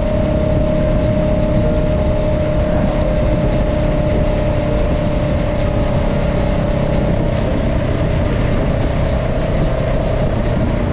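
Wind buffets and roars past the rider.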